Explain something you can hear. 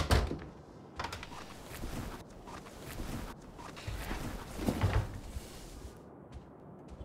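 Clothes rustle.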